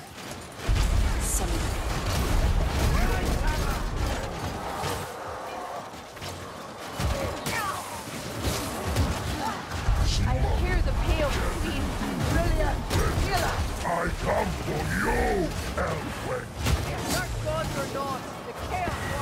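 Swords clash and slash against enemies in quick, sharp hits.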